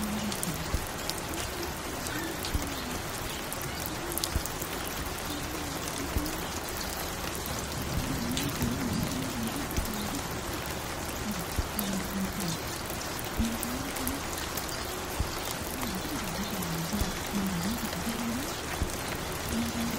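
A vinyl record crackles and pops on a turntable.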